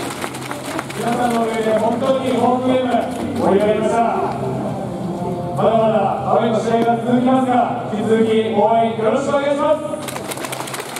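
A young man speaks with animation into a microphone, heard over loudspeakers in a large echoing hall.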